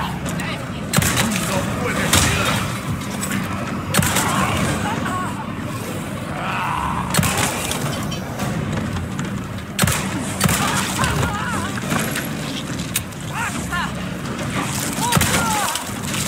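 A handgun fires single shots.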